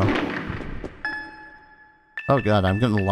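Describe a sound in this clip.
A soft electronic chime rings as a game menu opens.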